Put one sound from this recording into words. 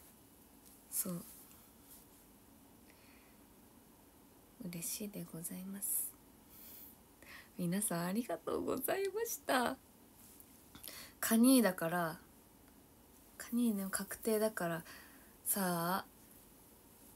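A young woman talks animatedly, close to a microphone, with pauses.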